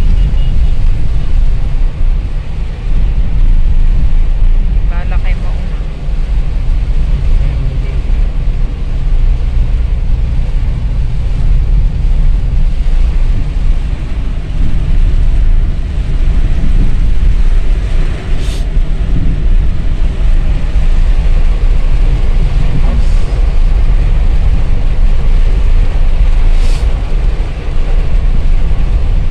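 A car's engine and tyres rumble low on a wet road.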